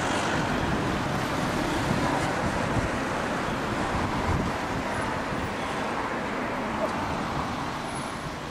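A tram rumbles slowly along rails.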